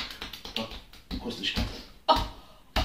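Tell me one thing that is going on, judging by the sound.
Hands slap rhythmically on bare skin.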